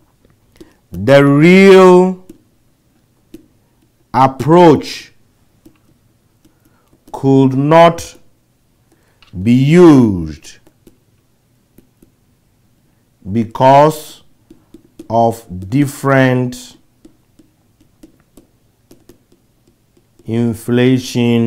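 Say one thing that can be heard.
A man speaks slowly and calmly in short phrases with pauses, close to a microphone.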